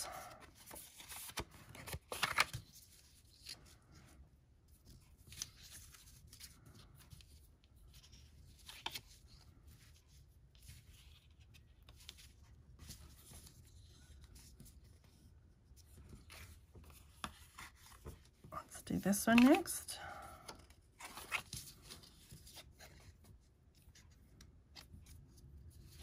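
Thin twine rubs and swishes as it is pulled through paper.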